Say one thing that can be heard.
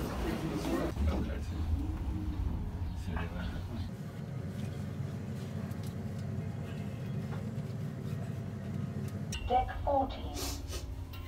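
An elevator hums steadily as it rises.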